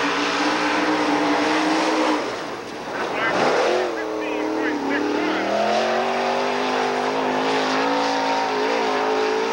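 A race car engine roars loudly and changes pitch as it revs.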